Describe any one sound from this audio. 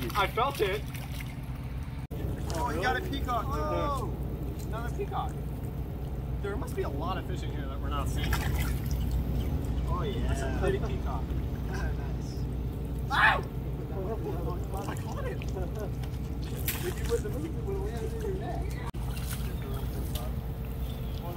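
Water splashes as a man wades and sweeps a net.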